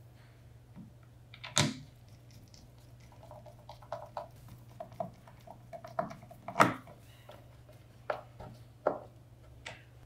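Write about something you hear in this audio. A screwdriver scrapes and clicks against metal screws.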